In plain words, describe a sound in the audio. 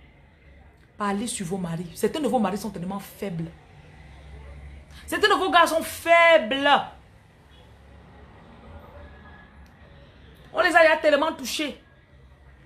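A woman speaks close to the microphone with animation, in short bursts with pauses.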